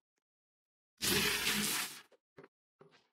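A game character transforms with a loud magical whoosh.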